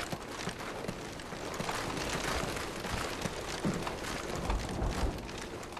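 Footsteps thud at a steady pace on a hard floor.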